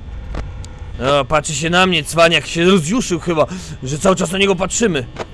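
A young man speaks with animation close to a headset microphone.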